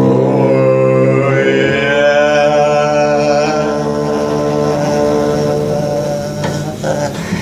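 A double bass is bowed in long, sustained notes.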